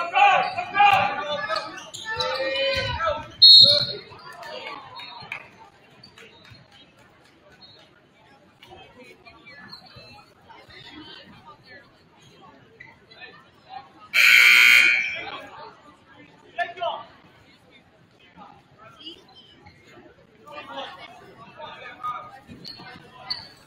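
Spectators chatter in the stands.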